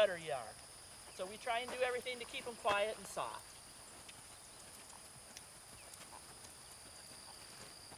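A horse's hooves thud softly on packed dirt at a walk.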